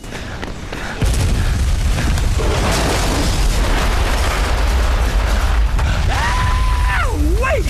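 A heavy crane engine rumbles and roars.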